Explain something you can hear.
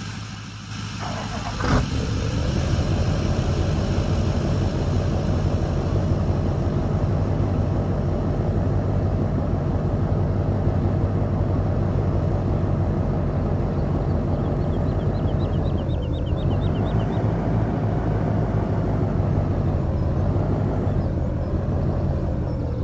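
A truck's diesel engine rumbles steadily, rising and falling in pitch as it drives.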